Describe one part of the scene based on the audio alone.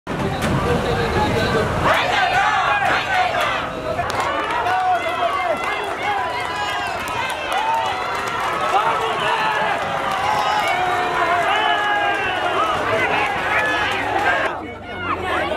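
A crowd of marchers chants slogans loudly outdoors.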